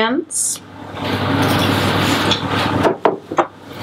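Flour pours softly into a metal bowl.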